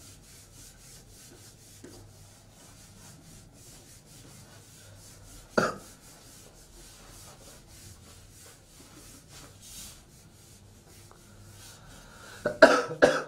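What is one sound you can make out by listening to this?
An eraser rubs across a whiteboard with a soft swishing.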